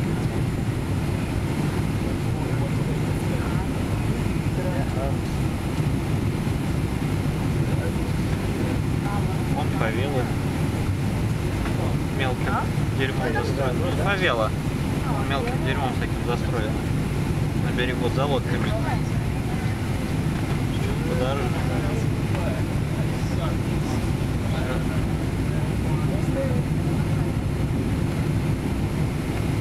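A jet engine roars steadily in the cabin.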